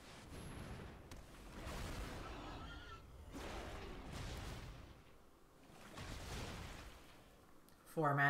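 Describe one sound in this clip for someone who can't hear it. Magical whooshing effects swell and fade.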